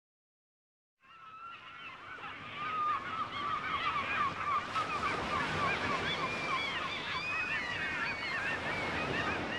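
Water laps and splashes gently.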